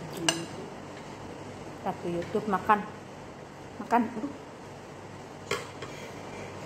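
Fingers scrape and tap food on a plate, close by.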